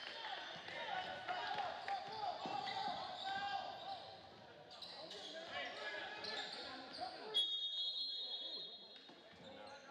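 Spectators murmur in a large echoing gym.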